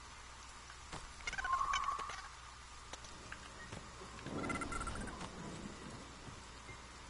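A man talks quietly into a microphone.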